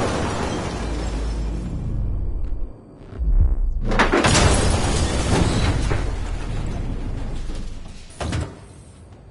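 Broken glass and debris clatter to the floor.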